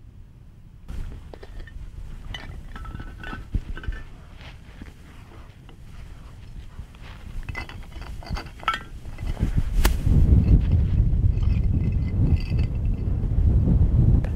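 Stones clink and scrape as they are stacked.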